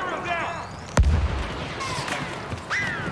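An explosion booms with a low rumble.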